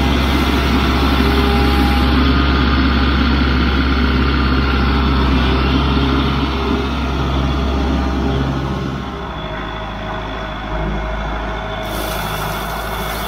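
Gravel crunches under a tractor's tyres.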